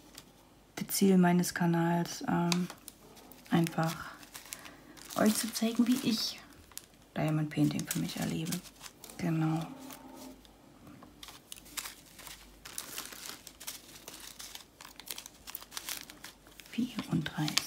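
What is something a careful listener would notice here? A small plastic bag of beads crinkles and rustles in hands.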